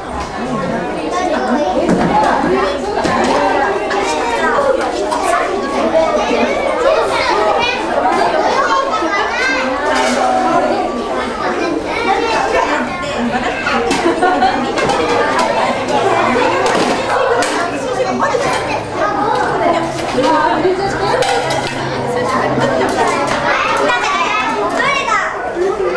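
Many young children chatter and call out all around.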